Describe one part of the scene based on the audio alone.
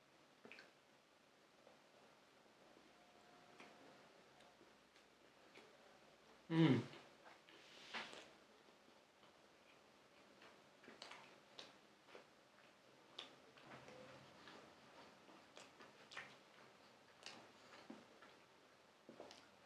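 A young man chews food with soft, wet crunching sounds.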